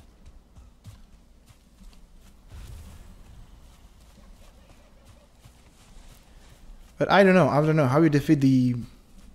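Footsteps rustle softly through grass.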